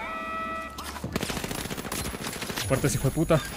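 A rifle fires a rapid string of shots.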